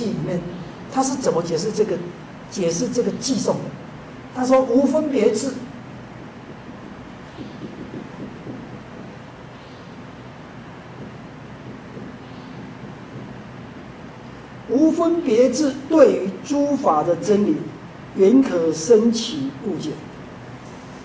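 A man speaks calmly and nearby in short bursts.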